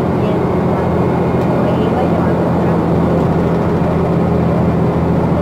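A bus engine hums steadily from inside the moving bus.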